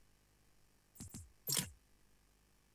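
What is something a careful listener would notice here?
A menu button clicks twice.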